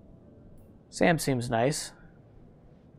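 A middle-aged man speaks briefly and with animation into a microphone.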